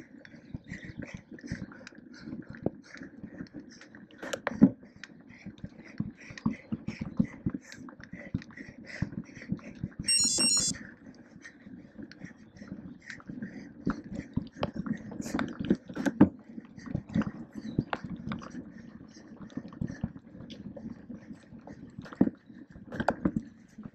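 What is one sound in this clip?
A bicycle rattles and clanks over rough ground.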